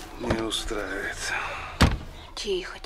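A man speaks from inside a car.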